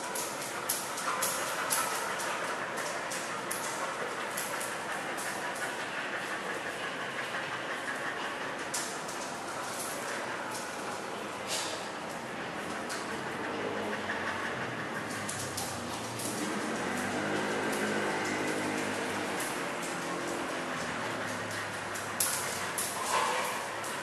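Small dogs growl and snarl playfully as they tussle.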